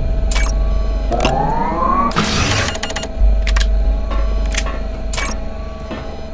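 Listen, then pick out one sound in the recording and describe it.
A handheld electronic device chirps and beeps as buttons are pressed.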